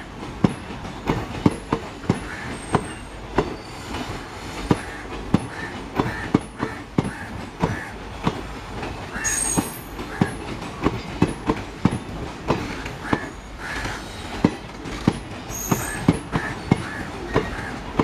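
A passenger train rumbles past close by.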